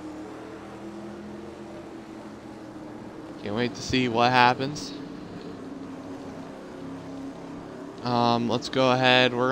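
Race car engines drone steadily at high revs.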